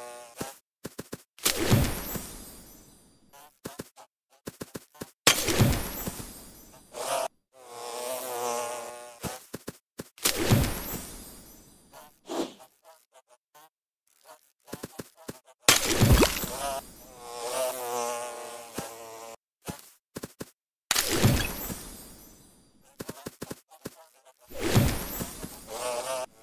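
Bright electronic chimes and pops ring out in bursts as pieces match in a game.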